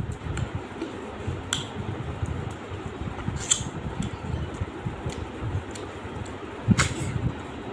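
A man chews food wetly and loudly, close up.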